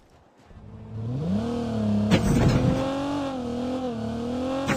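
A video game car engine revs up as the car accelerates.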